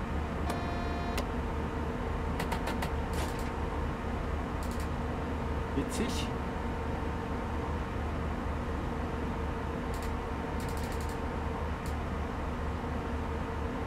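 A train engine hums and rumbles steadily.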